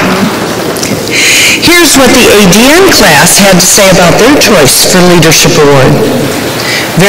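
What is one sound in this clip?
A woman speaks calmly through a microphone in a large echoing hall.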